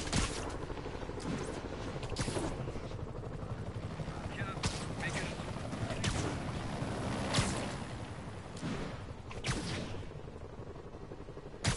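Air whooshes as a figure swings quickly through the air.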